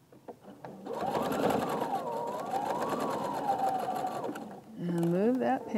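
A sewing machine runs with a fast, steady whirring stitch.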